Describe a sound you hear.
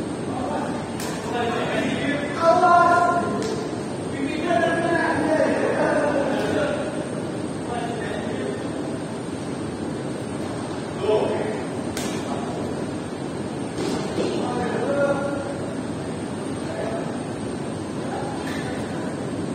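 Badminton rackets strike shuttlecocks with sharp pops.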